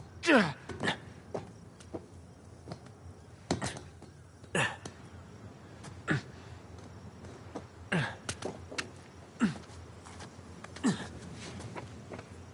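A climber's hands grab and knock against stone ledges in short bursts.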